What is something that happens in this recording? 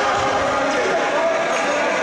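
A handball bounces on a hard court floor.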